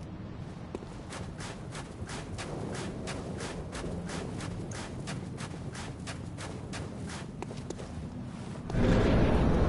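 Footsteps run quickly across snow.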